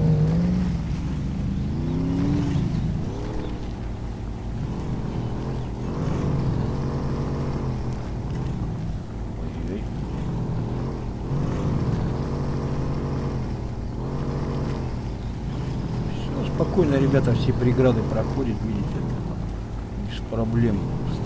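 Tyres churn through thick mud.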